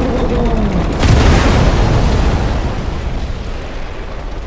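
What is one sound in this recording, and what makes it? A huge explosion booms with a deep rumble.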